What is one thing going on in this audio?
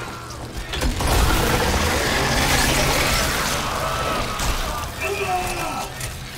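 A weapon fires a loud, roaring burst.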